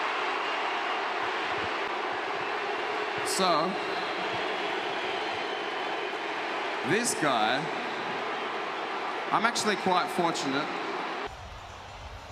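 A large crowd murmurs and cheers in an echoing space.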